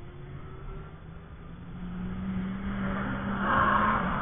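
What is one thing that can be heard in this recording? A sports car engine roars as the car approaches and speeds past.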